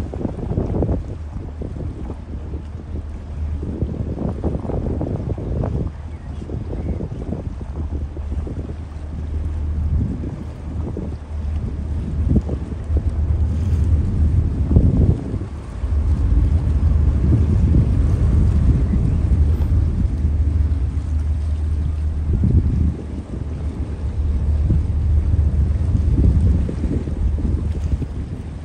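Choppy water splashes against a boat's hull.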